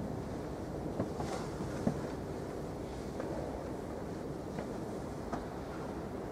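Footsteps echo in a large hall.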